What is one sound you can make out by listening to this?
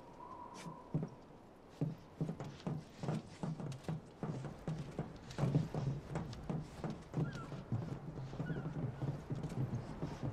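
Footsteps clang on a metal deck.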